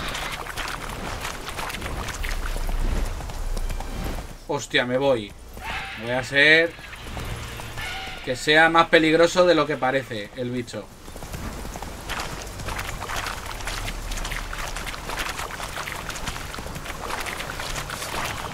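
A horse gallops, its hooves thudding quickly on soft ground.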